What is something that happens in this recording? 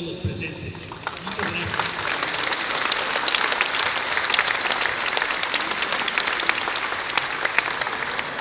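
A crowd of people claps and cheers.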